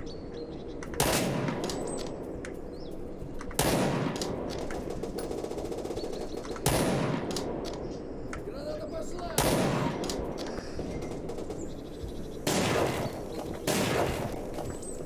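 Rifle shots crack loudly in bursts.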